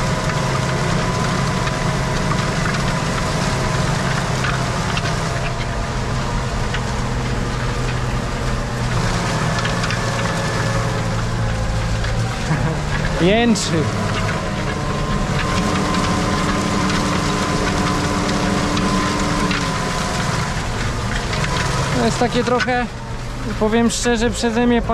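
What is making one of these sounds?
A tractor engine drones steadily from inside the cab.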